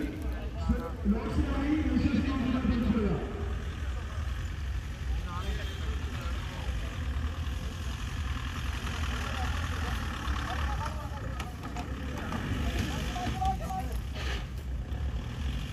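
An off-road vehicle's engine rumbles and revs as it climbs over dirt.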